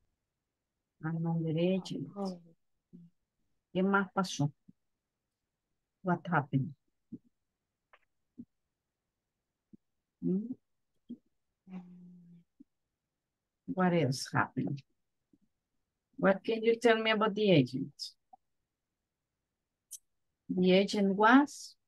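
A woman speaks calmly in short phrases through an online call.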